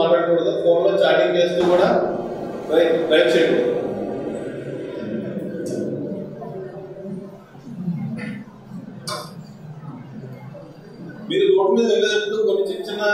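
A young man speaks with animation into a microphone, heard through a loudspeaker in an echoing room.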